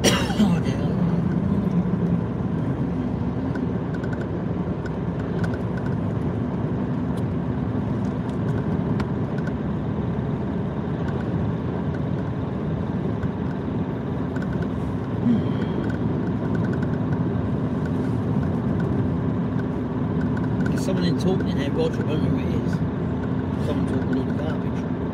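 Tyres roll steadily on a smooth road.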